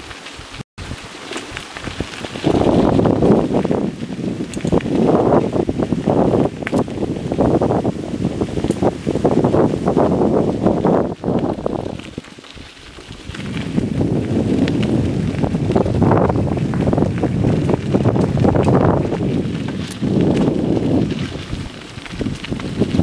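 Bicycle tyres roll and rattle over a bumpy dirt path.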